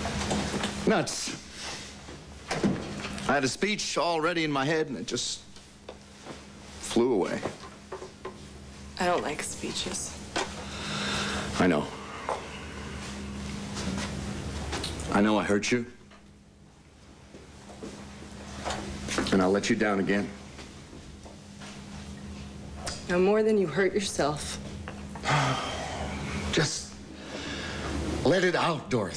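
A middle-aged man speaks firmly, close by.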